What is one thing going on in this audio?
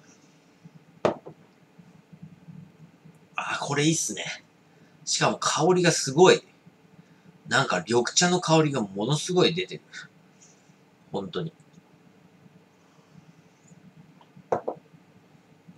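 A glass is set down on a table with a light knock.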